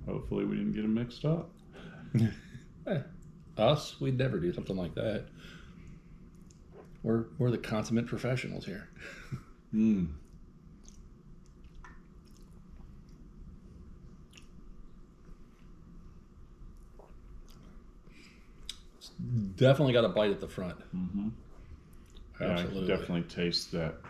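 A second middle-aged man talks calmly close by.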